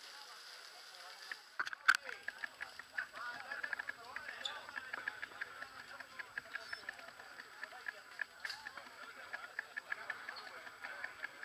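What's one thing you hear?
A crowd of people chat in the background outdoors.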